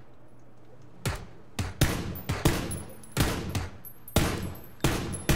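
Rifle shots crack in quick succession.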